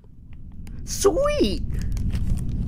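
A man makes a short, close vocal sound.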